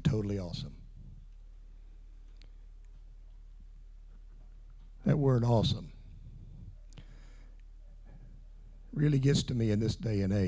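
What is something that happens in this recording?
An older man speaks with emphasis into a microphone, heard through a loudspeaker in a room.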